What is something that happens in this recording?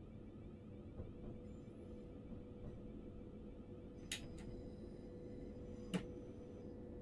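Train wheels click and clunk over rail joints.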